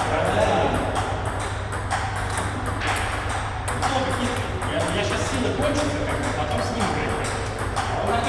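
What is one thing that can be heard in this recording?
Ping pong balls click sharply off paddles and tables in a quick, rhythmic rally.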